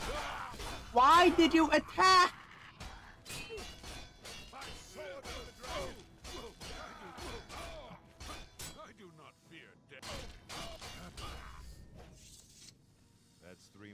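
Swords clash with sharp metallic hits.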